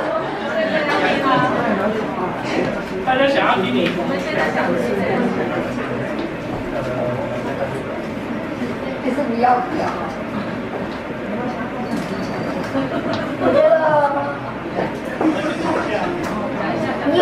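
A young boy talks into a microphone, heard through a loudspeaker.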